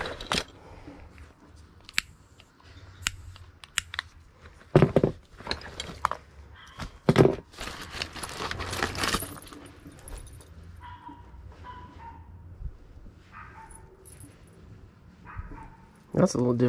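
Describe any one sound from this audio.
Metal parts clink and knock together.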